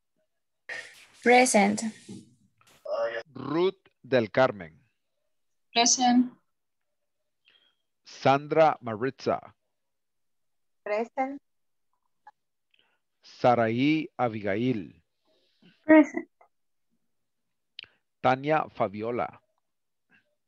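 A young woman speaks through an online call in short phrases with pauses.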